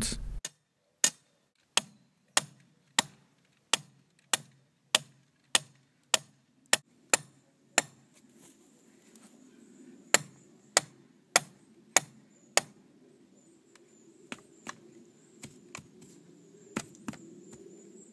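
A mallet strikes a metal rod into the ground with sharp, regular knocks.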